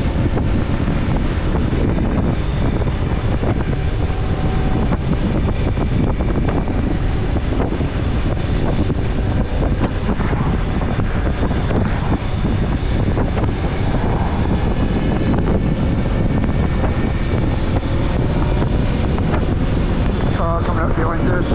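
Wind roars loudly against a microphone while riding.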